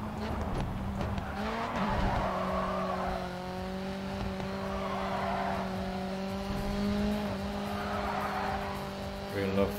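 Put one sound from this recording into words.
Tyres screech as a car slides through corners.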